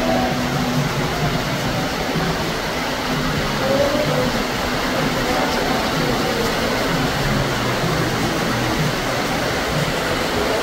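Fountain water splashes and gushes steadily.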